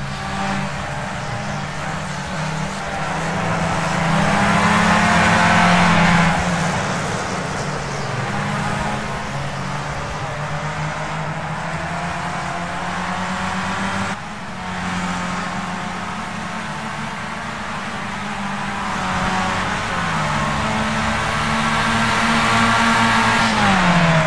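A racing car engine whines at high revs, rising and dropping in pitch.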